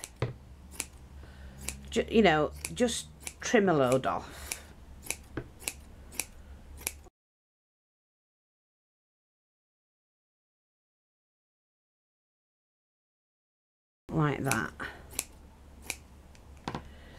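Scissors snip repeatedly through soft wadding.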